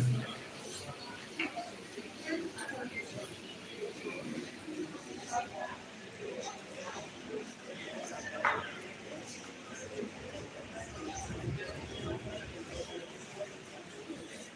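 A crowd of men and women murmurs and talks quietly nearby.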